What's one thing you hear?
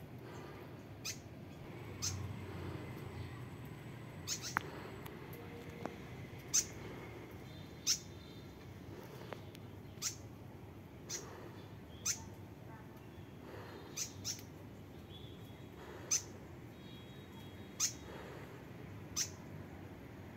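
Birds chirp in short, sharp calls now and then.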